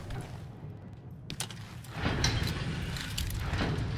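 A metal lift gate rattles shut.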